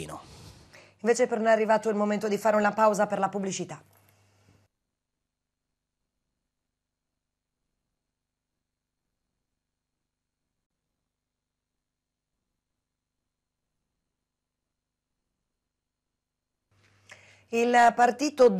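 A young woman reads out calmly and clearly, as if into a microphone.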